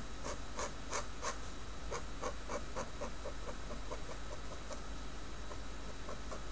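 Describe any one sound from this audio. A pen scratches quickly across paper in short, rhythmic strokes.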